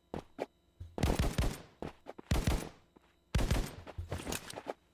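Rapid gunshots ring out from a video game.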